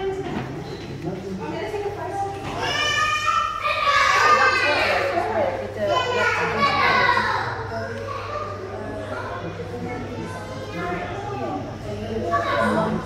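People murmur in the background.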